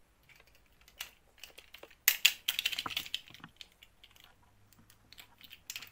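A plastic doll's parts click as they are handled.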